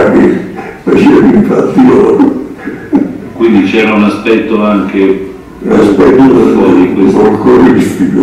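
An elderly man talks calmly through a loudspeaker.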